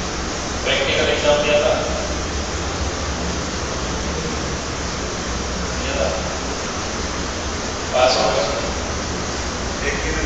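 A man speaks in short bursts, as if lecturing, in a slightly echoing room.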